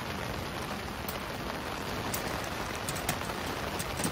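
A metal stove door clanks shut.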